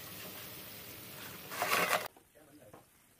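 Pieces of fried bread thump and clatter into a pan.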